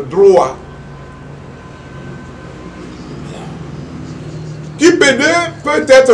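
An elderly man speaks with emphasis into close microphones, with pauses.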